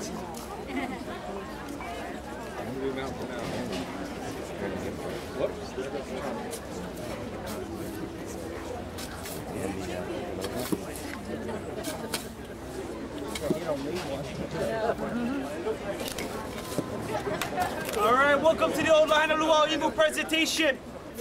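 A crowd murmurs and chatters nearby outdoors.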